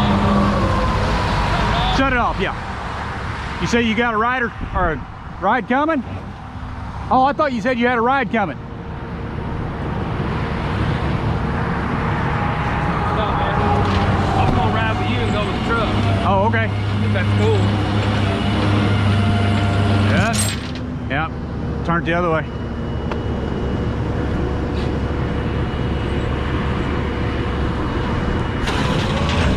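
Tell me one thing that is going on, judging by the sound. A pickup truck's engine labours as it drives slowly up onto a steel tow-truck deck.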